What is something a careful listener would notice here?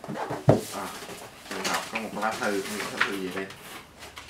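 A paper envelope rustles and crinkles.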